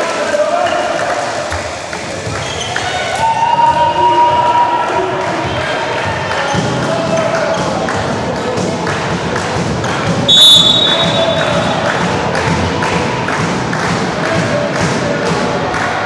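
A volleyball is struck hard by hand.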